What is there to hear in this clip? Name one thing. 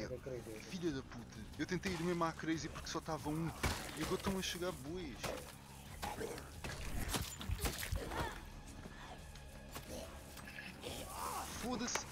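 Blunt weapon blows thud against bodies.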